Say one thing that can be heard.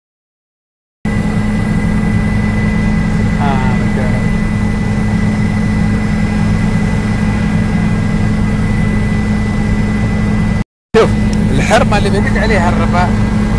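A helicopter's engine and rotor drone loudly and steadily from inside the cabin.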